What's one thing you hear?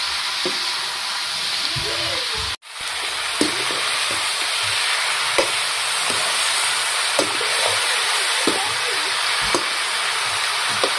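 A metal spatula scrapes and clanks against the pan.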